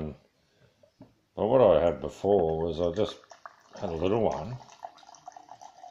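Liquid pours from a bottle into a glass.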